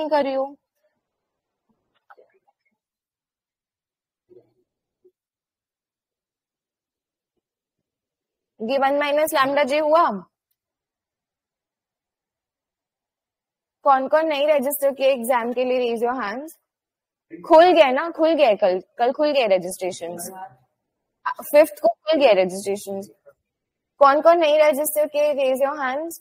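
A young woman speaks calmly into a microphone, explaining in bursts with pauses.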